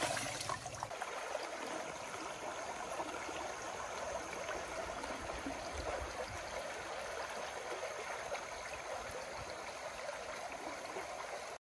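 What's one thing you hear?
A river rushes and gurgles steadily.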